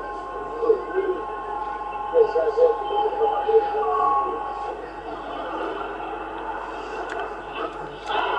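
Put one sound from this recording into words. A radio receiver hisses with static.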